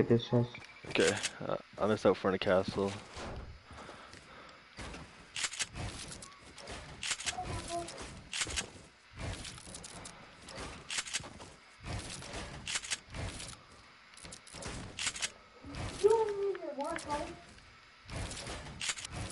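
Building pieces snap into place with quick, repeated sharp clacks.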